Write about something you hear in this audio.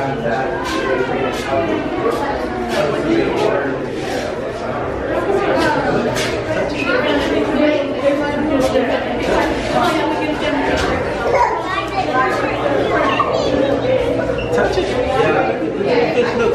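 A crowd of adults and children chatters throughout, echoing in a large indoor space.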